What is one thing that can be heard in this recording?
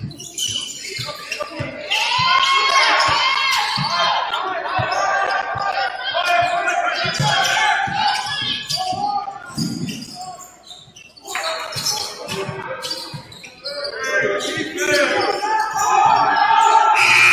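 Spectators on the sidelines shout and cheer.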